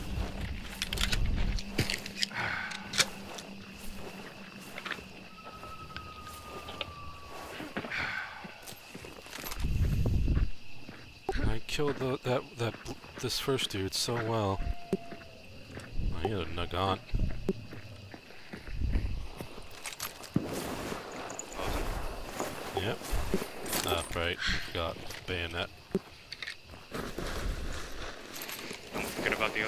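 Footsteps crunch through dry leaves and twigs.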